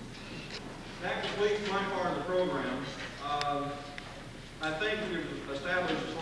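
A man speaks to the audience through a microphone in an echoing hall.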